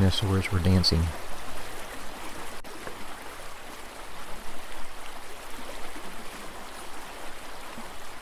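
Shallow water ripples gently.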